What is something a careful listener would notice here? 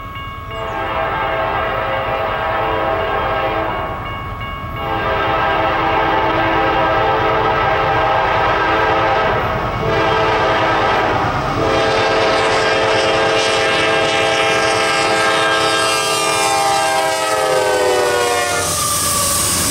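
A train horn blares in long, loud blasts, dropping in pitch as the train passes.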